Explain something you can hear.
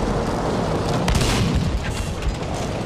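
A shell explodes nearby.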